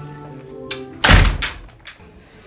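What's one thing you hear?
A door bangs shut.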